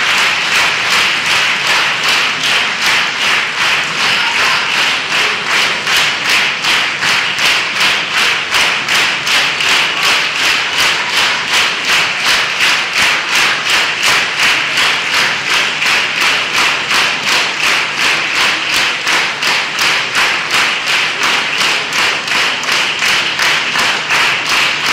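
A large audience claps loudly and rhythmically in unison in an echoing hall.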